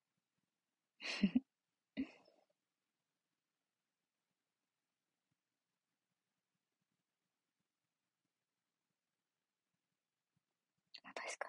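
A young woman speaks softly and briefly, close to the microphone.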